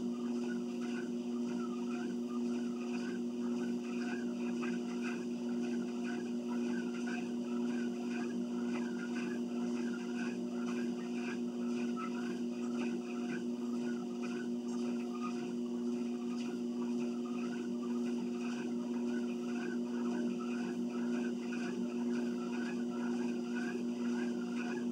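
Footsteps thud on a moving treadmill belt at a walking pace.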